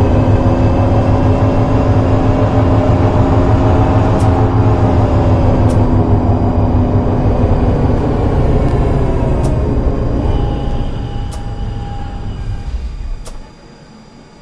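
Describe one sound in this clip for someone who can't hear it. A tram motor hums and whines as the tram rolls along rails, then slows to a stop.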